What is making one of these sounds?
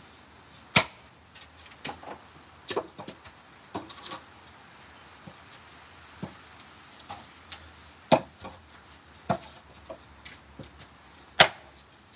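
A wooden log thumps as it is rolled and tipped on gravel.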